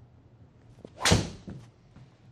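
A golf club strikes a ball with a sharp smack.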